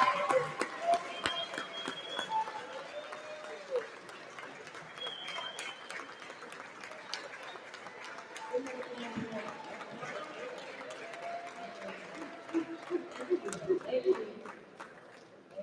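People applaud and cheer in an echoing hall.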